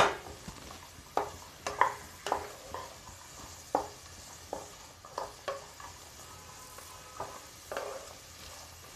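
A spatula scrapes and taps against a metal pan.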